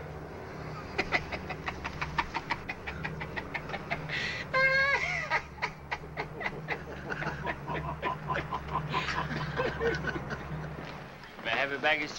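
A man laughs loudly in bursts.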